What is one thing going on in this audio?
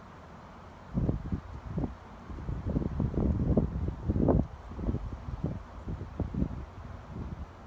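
Wind gusts blow outdoors, buffeting and rumbling.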